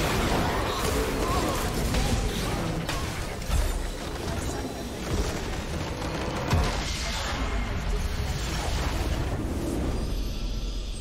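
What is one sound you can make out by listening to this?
Game battle effects clash and crackle loudly.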